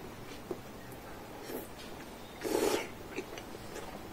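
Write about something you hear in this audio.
A man slurps noodles loudly.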